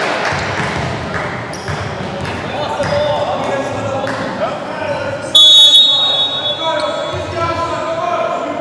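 Spectators murmur and chatter.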